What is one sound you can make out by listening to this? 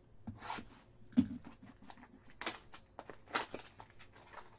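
Cardboard and plastic crinkle and rustle in hands.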